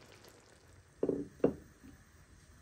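A ceramic plate knocks down onto a hard counter.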